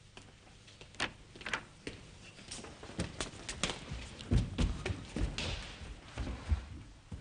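Footsteps thump and shuffle on a hard floor.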